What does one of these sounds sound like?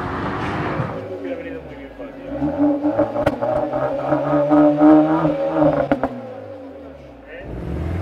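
A car engine idles and revs up and down through the exhaust.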